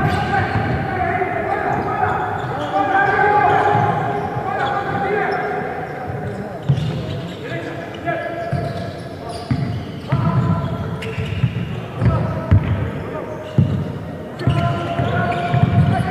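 A basketball thuds as it bounces on a hard floor in an echoing hall.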